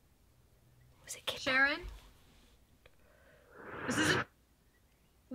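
A young woman speaks tensely into a phone.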